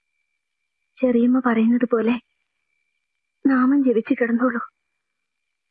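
A woman speaks softly and tearfully, close by.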